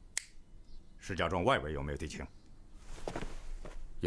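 A middle-aged man answers with a short, firm reply.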